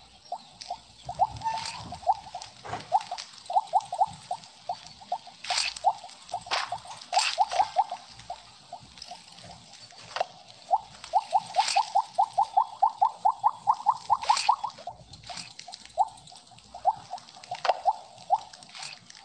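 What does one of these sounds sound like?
Quick pitched blips pop in rapid runs as a game snake gobbles glowing pellets.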